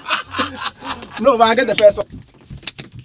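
Young men laugh loudly nearby.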